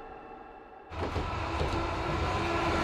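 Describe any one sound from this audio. A train rumbles past.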